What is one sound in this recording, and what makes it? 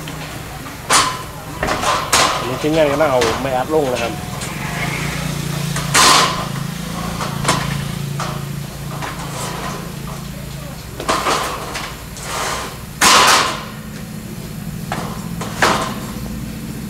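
Metal sheets clatter and bang as a man slides them onto a frame.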